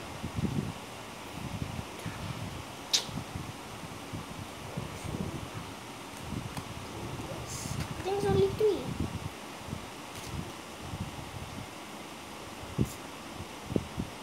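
Cards rustle and tap as a boy handles them.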